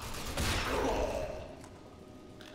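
A gunshot rings out with a loud burst that echoes.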